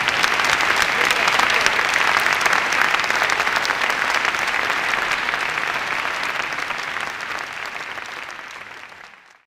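A large audience applauds in a big echoing hall, then the applause slowly fades away.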